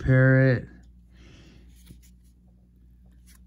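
A playing card rustles softly as it is handled.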